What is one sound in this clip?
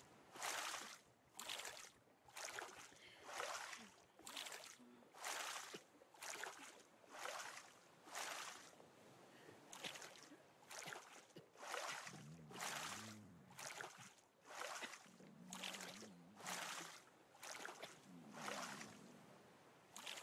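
Water splashes again and again as a paddle strokes through it.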